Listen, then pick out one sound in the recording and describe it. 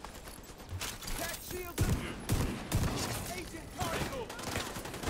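Gunshots fire in short, heavy bursts.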